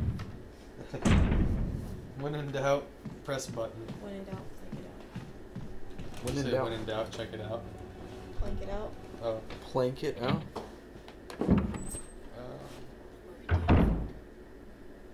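A door thuds shut with a low boom.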